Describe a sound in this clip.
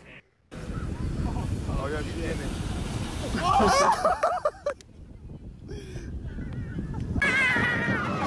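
Ocean waves crash and roar on a beach.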